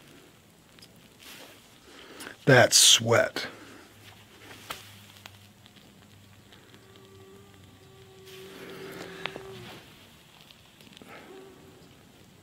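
Water drips from a wrung-out cloth.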